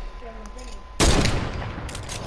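A sniper rifle fires a single sharp shot.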